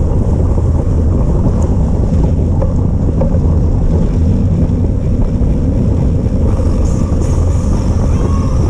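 Wind rumbles steadily across the microphone.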